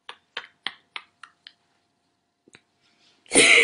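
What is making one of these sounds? A young man giggles softly in short bursts close by.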